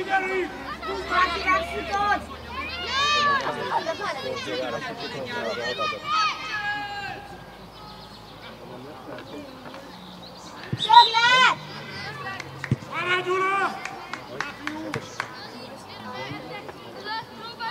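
Young girls shout and call out to each other across an open field.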